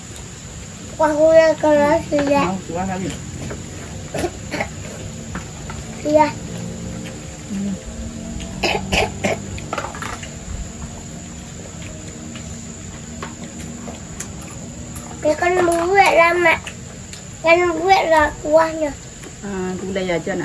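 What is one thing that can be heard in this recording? A young girl talks in a high voice nearby.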